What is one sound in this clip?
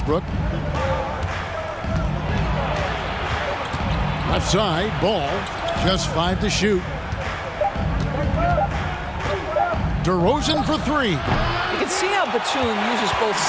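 A basketball bounces with dull thumps.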